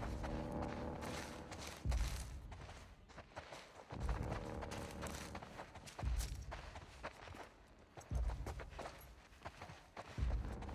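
Footsteps crunch softly on scattered debris.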